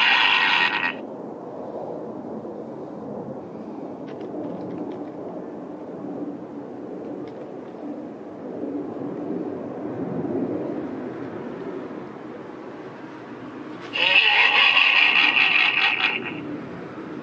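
A toy pumpkin gives out a short burst of loud, harsh electronic sound.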